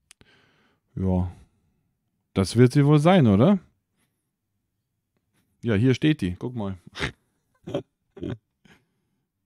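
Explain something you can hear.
A young man talks casually and close by into a microphone, in short bursts.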